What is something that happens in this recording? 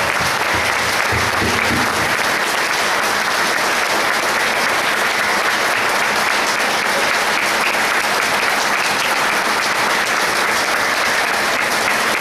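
A crowd cheers and shouts loudly throughout.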